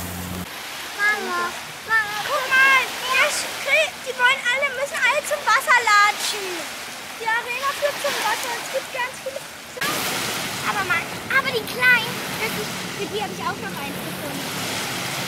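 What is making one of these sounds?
A young child talks with animation close by.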